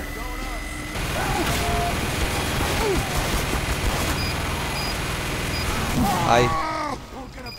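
A heavy machine gun fires in a rapid, continuous roar.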